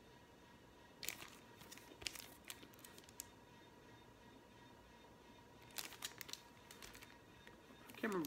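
A record sleeve rustles and taps as it is handled.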